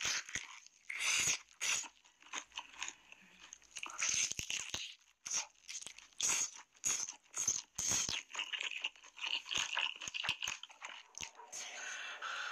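A young woman bites and chews crunchy fried chicken with loud, wet crunching close to a microphone.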